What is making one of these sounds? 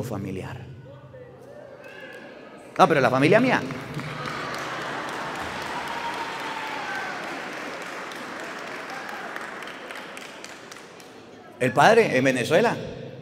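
A man speaks through a microphone in an echoing hall.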